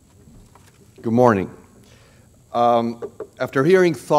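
An older man speaks through a microphone, loud and echoing in a large room.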